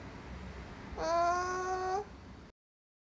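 A young woman hums a steady note.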